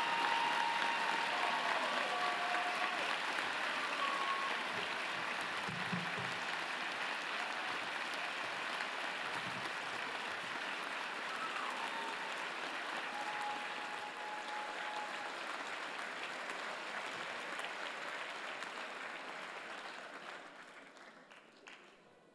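A large crowd applauds in a big echoing hall, then the applause fades away.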